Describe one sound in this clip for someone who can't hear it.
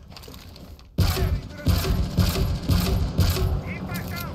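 A grenade launcher fires repeated heavy thumps.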